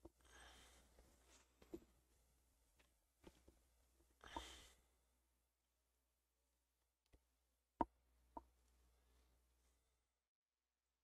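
A young man talks quietly into a headset microphone.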